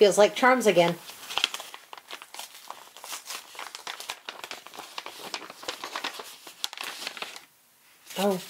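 Paper crinkles and tears as an envelope is opened.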